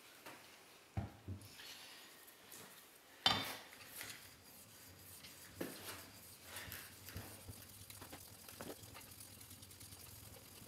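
A metal plane clicks and scrapes against a sharpening stone.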